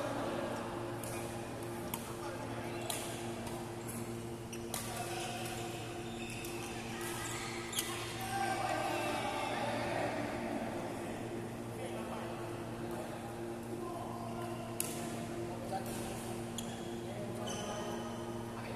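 Rackets strike shuttlecocks with sharp pops in a large echoing hall.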